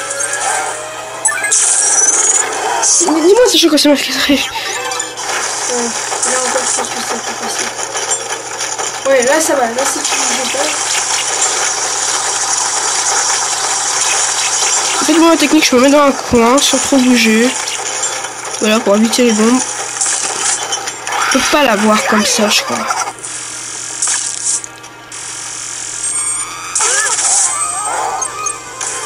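Video game music and sound effects play through a small tinny speaker.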